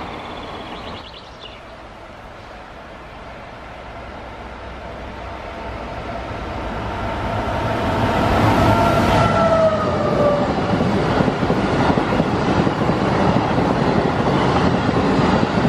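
A train approaches and rumbles loudly past close by.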